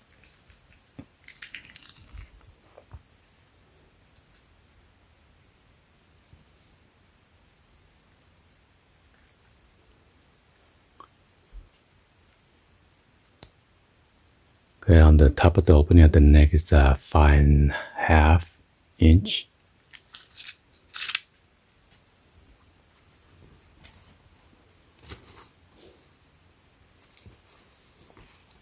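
Fabric rustles softly as hands smooth and handle a shirt.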